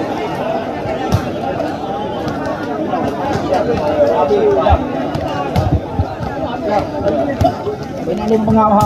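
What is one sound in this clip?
A large crowd chatters and cheers outdoors.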